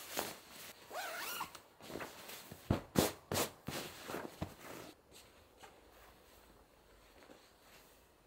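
Bedding rustles as hands smooth and pat a pillow.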